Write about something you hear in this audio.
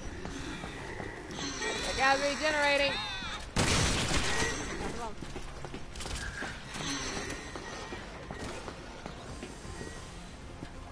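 Gunshots and blasts ring out from a video game.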